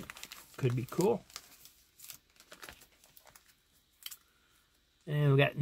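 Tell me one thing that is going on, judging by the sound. Plastic comic sleeves rustle and crinkle as they are handled.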